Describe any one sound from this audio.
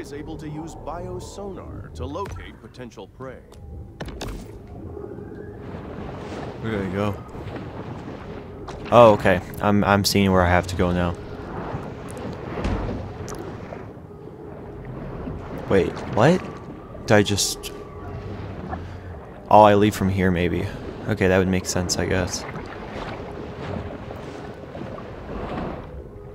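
Water swirls and bubbles softly underwater.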